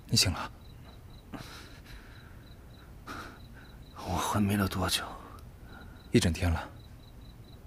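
A young man speaks quietly and calmly nearby.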